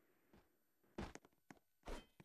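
Footsteps patter on the ground.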